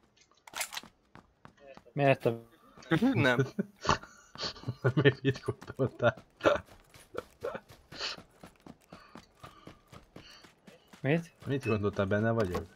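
Footsteps thud across hard ground and dry dirt.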